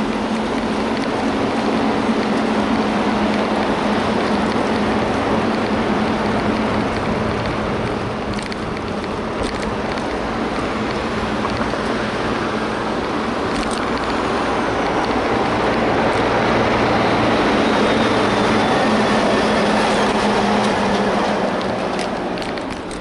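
Wind rushes loudly past the microphone, then eases off.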